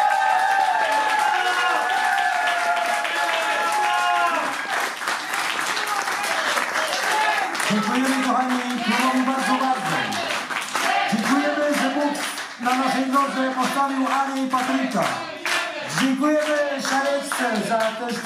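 An audience claps along to the beat.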